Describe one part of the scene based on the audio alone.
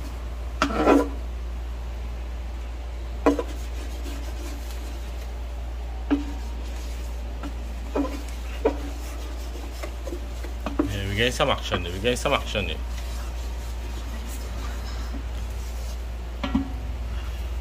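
A wooden spoon scrapes and knocks against a metal pan.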